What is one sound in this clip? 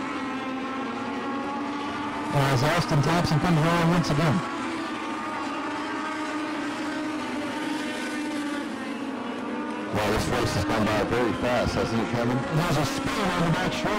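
Racing car engines roar steadily around a track.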